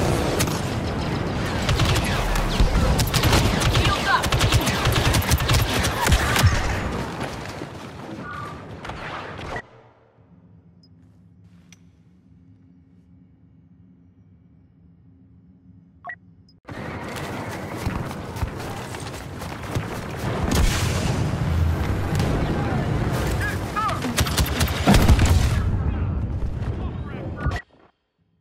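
Blaster guns fire in rapid bursts.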